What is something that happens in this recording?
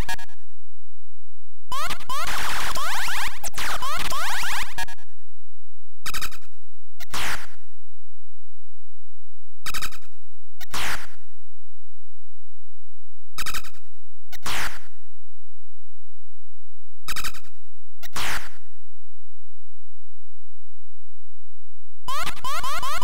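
Electronic game beeps and buzzy sound effects play in short bursts.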